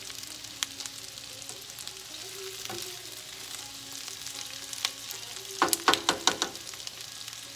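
A spatula scrapes and clatters against a frying pan.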